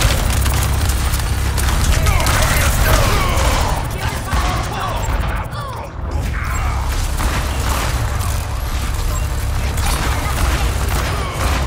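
Guns fire rapidly in bursts.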